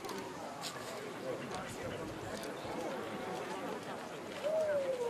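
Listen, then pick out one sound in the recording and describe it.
A crowd of men and women chat and murmur outdoors nearby.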